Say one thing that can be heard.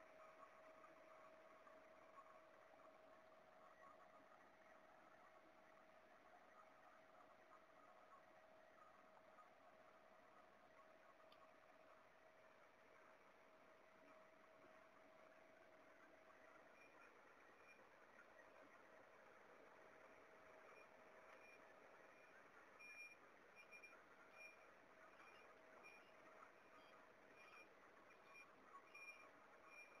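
A tractor engine drones steadily nearby.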